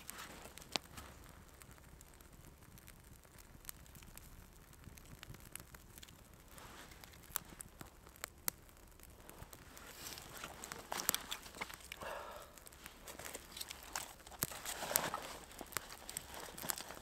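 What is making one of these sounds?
A small fire crackles and pops.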